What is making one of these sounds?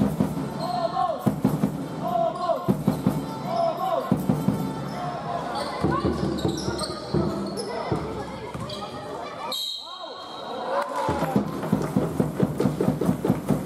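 Sneakers squeak on a hall floor during a basketball game.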